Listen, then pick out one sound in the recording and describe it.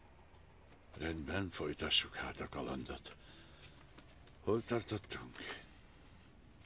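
A middle-aged man speaks close by.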